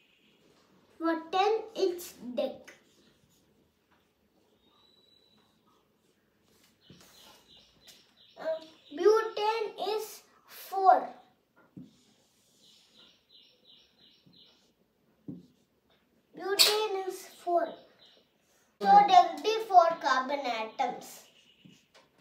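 A young boy speaks calmly nearby.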